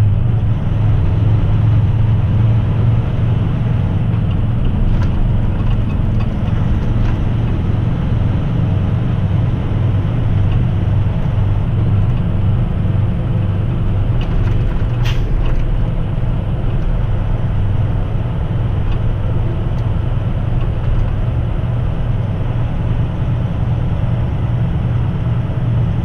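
Tyres roll over a road with a steady hum.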